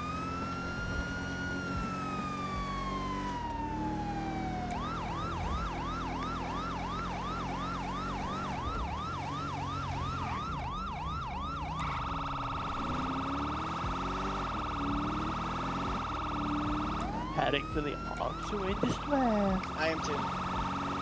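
A police siren wails loudly, changing its pattern.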